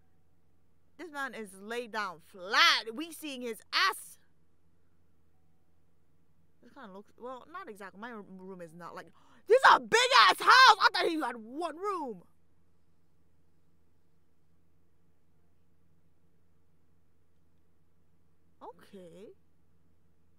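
A young woman speaks thoughtfully into a close microphone, in short bursts with pauses.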